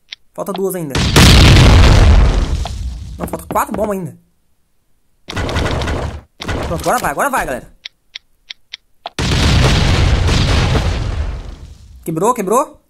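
An explosion booms loudly with a roaring blast.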